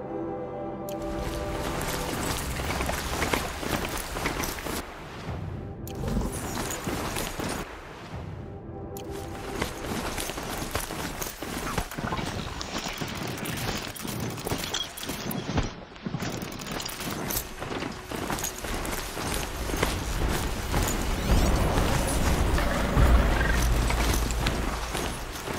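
A mechanical mount's hooves clatter and thud quickly over the ground.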